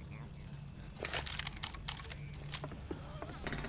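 A revolver's cylinder clicks and rattles as it is reloaded.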